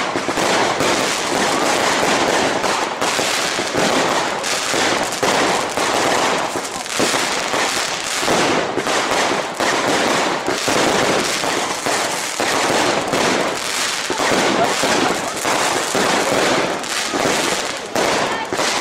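Fireworks bang and crackle rapidly, over and over.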